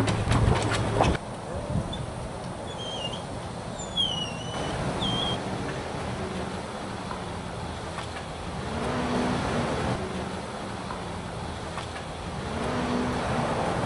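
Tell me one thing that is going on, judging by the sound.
Honeybees buzz in a dense swarm close by.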